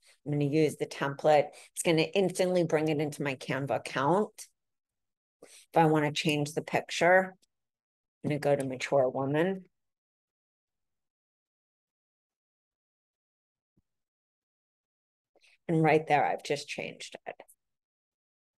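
A young woman talks calmly through a microphone, in short bursts with pauses.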